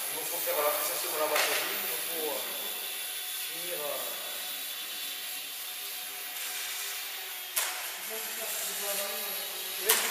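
A small model plane's electric motor whines steadily in a large echoing hall.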